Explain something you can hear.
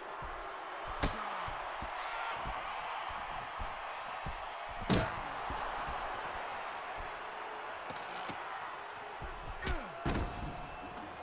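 Heavy thuds of bodies hit a wrestling ring mat.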